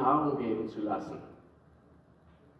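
A man speaks through loudspeakers in a large echoing hall.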